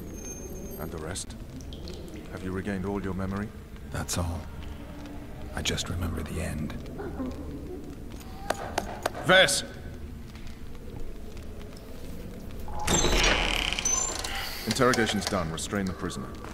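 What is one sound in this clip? A younger man asks questions calmly, close by.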